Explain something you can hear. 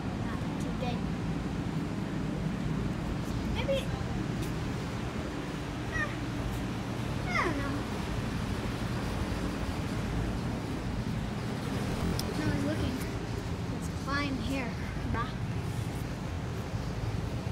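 A boy talks close to the microphone.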